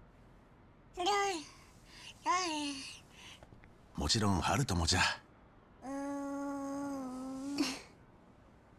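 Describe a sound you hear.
A baby coos and babbles.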